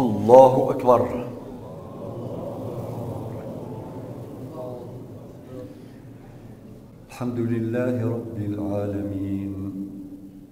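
A man chants a prayer through a loudspeaker in a large echoing hall.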